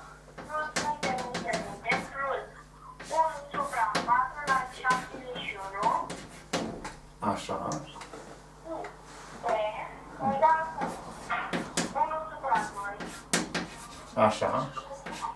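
An elderly man speaks calmly, as if lecturing.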